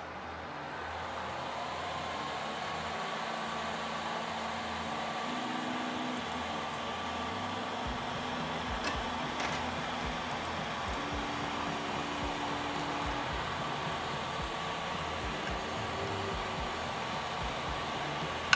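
A printer's cooling fan whirs steadily.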